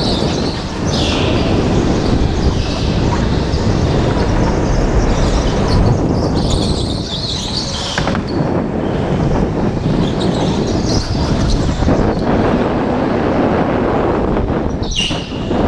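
An electric go-kart hums and rattles loudly up close as it races.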